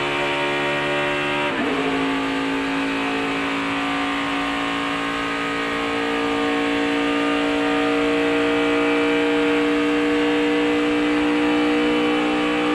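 A race car engine roars loudly at high speed, shifting gear and then revving steadily higher.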